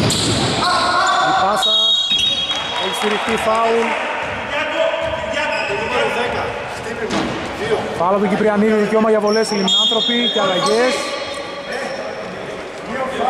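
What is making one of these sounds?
Men shout and call out across an echoing hall.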